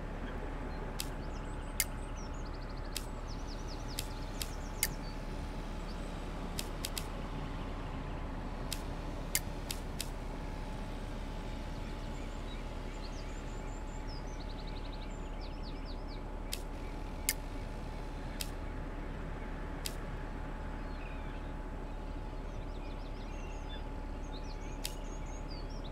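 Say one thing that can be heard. Sharp short clicks sound now and then as a game menu is used.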